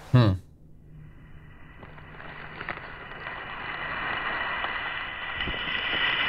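Television static hisses and slowly grows louder.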